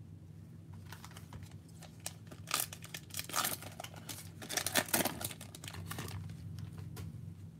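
A foil wrapper crinkles and tears open close by.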